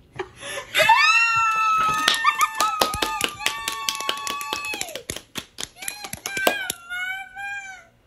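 A young man claps his hands rapidly.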